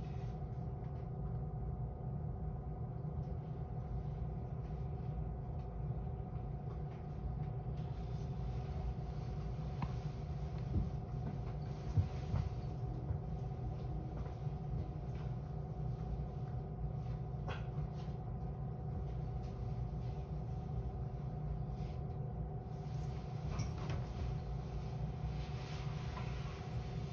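A train's engine idles with a steady low hum.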